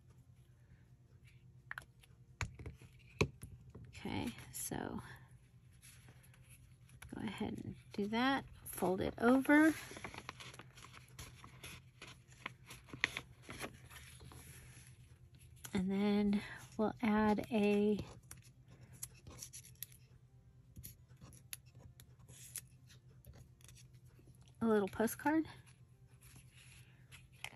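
Paper rustles as hands handle it.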